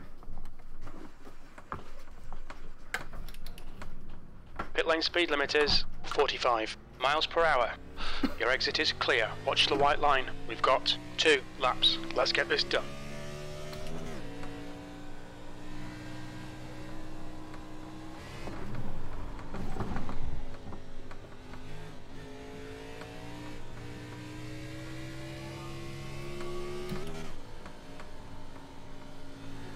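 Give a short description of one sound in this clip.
A racing car engine drones and revs, shifting up through the gears.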